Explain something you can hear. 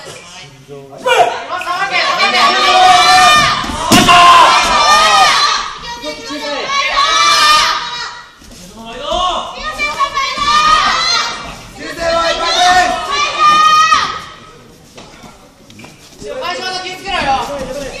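Young men shout loudly and excitedly in an echoing hall.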